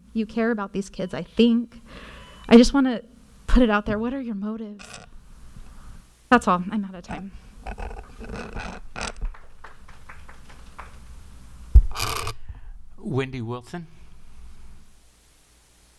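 A woman speaks through a microphone in a shaky, emotional voice.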